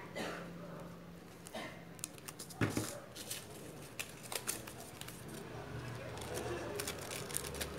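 Foam leaves rustle and crinkle as hands handle them.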